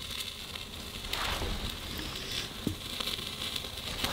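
A can is set down on a wooden surface.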